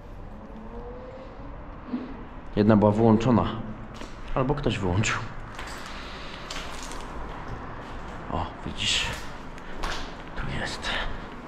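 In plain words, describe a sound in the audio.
Footsteps crunch on loose debris.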